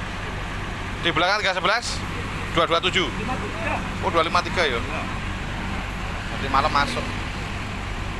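An elderly man speaks nearby in a calm, chatty voice.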